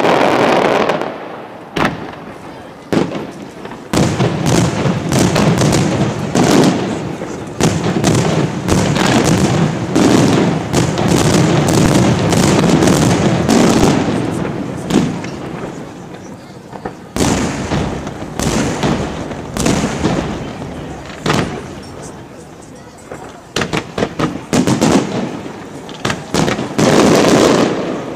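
Fireworks burst with loud booms and bangs, echoing outdoors.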